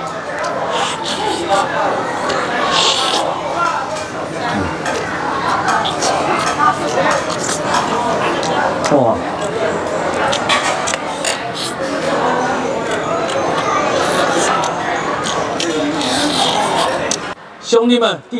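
A young man chews and slurps noisily up close.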